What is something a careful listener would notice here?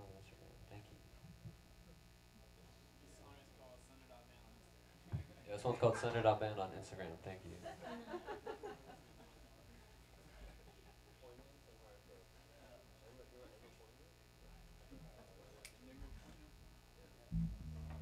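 An electric bass plays softly.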